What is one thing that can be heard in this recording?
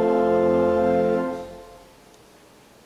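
An organ holds a chord that fades away in a large echoing hall.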